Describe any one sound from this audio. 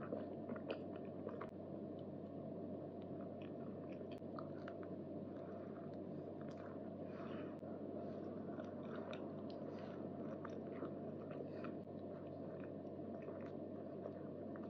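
A young woman chews soft cake close to a microphone, with moist smacking sounds.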